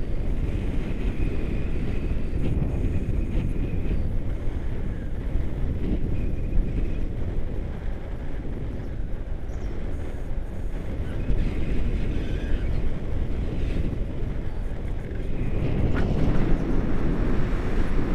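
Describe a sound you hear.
Wind rushes and buffets the microphone during a paraglider flight.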